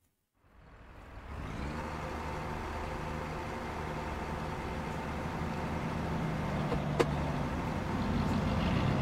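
A heavy truck engine idles and rumbles steadily.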